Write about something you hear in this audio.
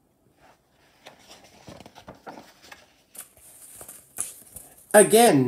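A book page is turned with a soft paper rustle.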